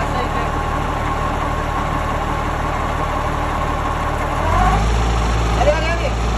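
An engine hums steadily close by, growing louder toward the end.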